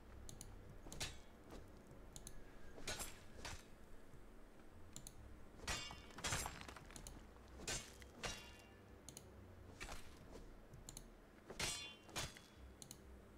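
A pickaxe strikes rock with sharp, repeated knocks.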